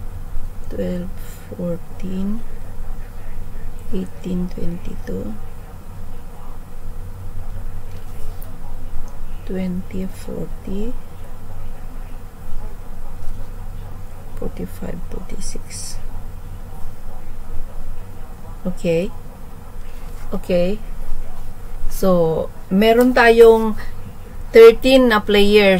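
An older woman speaks calmly in short bursts through a microphone.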